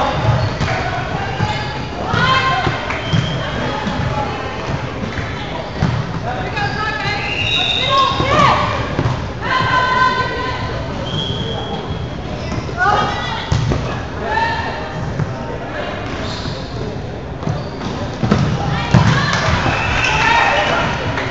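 Players shout and call to each other in a large echoing gym.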